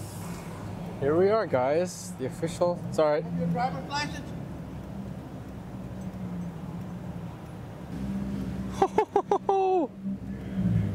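A young man talks close by inside a car.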